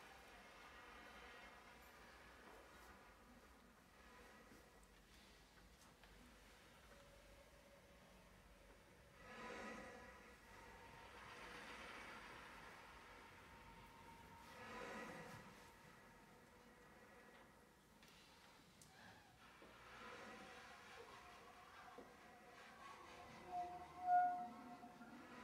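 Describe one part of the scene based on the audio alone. A drummer taps softly on cymbals and drums.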